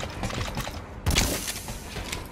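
A suppressed pistol fires a single shot.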